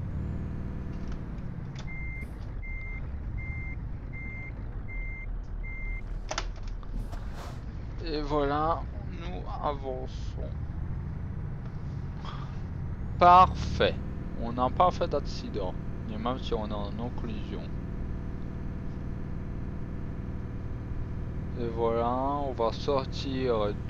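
A truck engine idles and rumbles steadily.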